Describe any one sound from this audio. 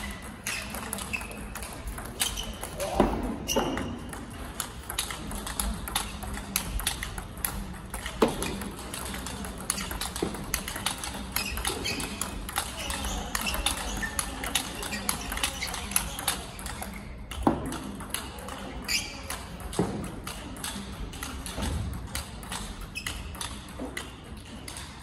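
A table tennis ball clicks rapidly back and forth off paddles and tables.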